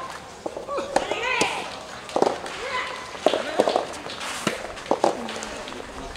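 A soft tennis ball is struck with a racket in sharp pops, back and forth.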